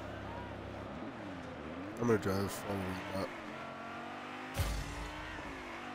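A car engine revs as the car speeds away.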